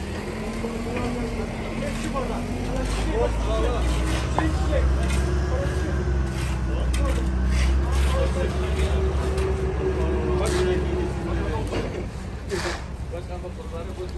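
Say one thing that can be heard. Men talk to each other outdoors.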